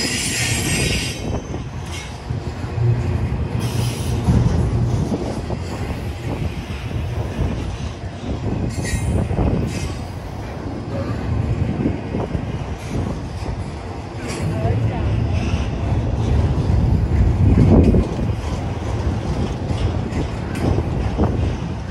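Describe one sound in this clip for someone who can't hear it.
Steel couplings clank and rattle as freight cars roll by.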